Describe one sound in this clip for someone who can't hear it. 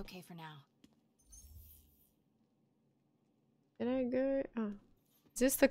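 A young woman speaks into a microphone in short, lively bursts.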